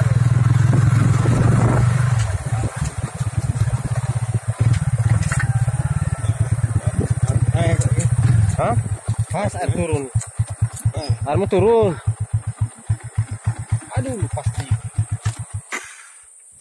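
A motorbike engine rumbles close by, then putters at idle and cuts out.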